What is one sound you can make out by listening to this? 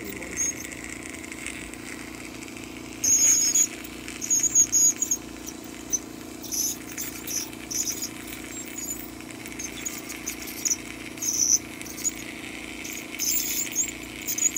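A dental scaler whines in short, high bursts.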